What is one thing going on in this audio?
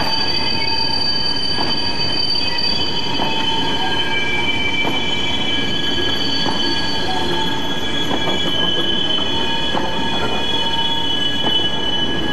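Train wheels squeal with steady high-pitched screeching.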